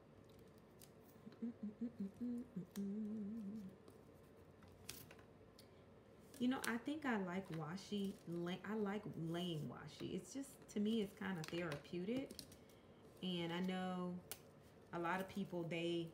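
Sticky tape peels off a roll with a short rasp.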